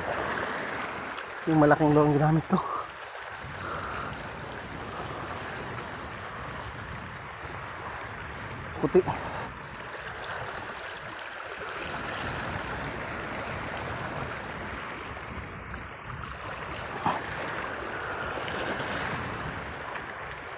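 Small waves lap against a rocky shore.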